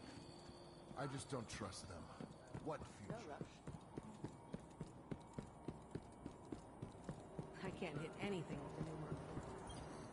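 Quick footsteps run on a hard floor.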